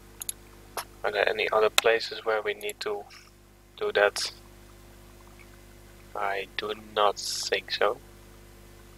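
A young man speaks calmly and close into a microphone.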